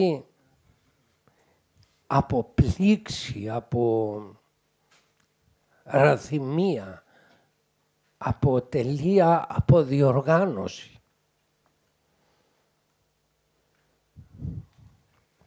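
An elderly man speaks with animation into a close microphone, in bursts with pauses.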